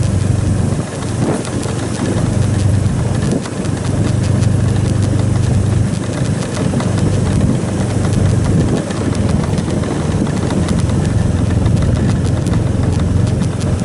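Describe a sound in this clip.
Wind buffets loudly, as if outdoors on a moving bike.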